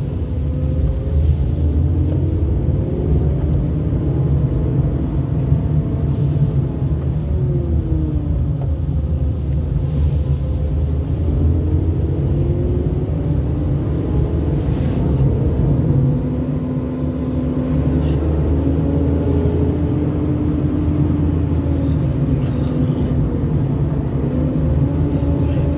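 A car engine hums steadily from inside a moving car, with a low road rumble.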